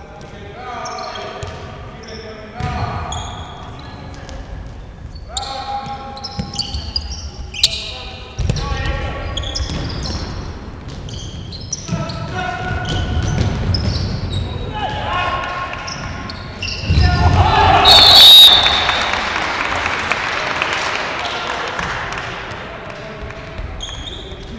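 Men shout during a fast game in an echoing hall.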